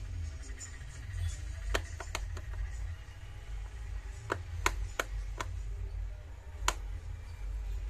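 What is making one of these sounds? A screwdriver pries and clicks against a plastic casing.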